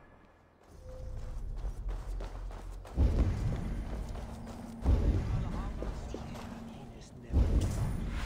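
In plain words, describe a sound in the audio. Footsteps crunch on stone and grass.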